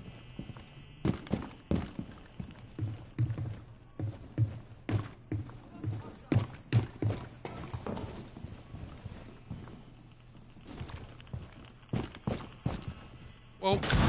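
Footsteps thud steadily on wooden floors and stairs.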